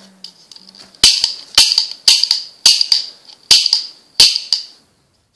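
A toy cap gun fires several sharp pops.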